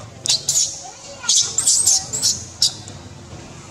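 A baby monkey squeals shrilly in short bursts.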